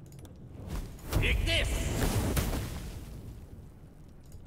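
A fiery blast bursts and crackles.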